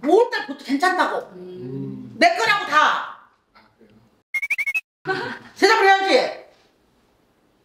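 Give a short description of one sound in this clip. A middle-aged woman talks animatedly close to a microphone.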